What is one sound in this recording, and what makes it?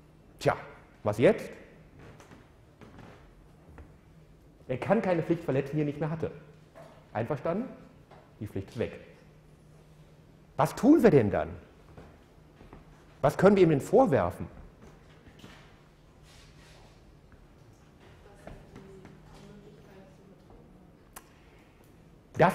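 A middle-aged man lectures calmly through a microphone in an echoing hall, in bursts with pauses.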